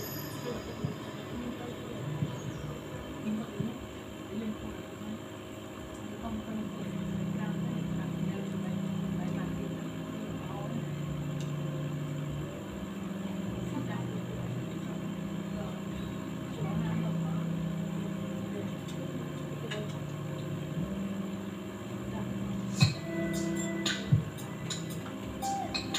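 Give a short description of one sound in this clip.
An aquarium air pump hums steadily.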